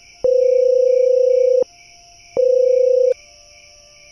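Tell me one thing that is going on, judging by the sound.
A phone rings with a steady electronic tone.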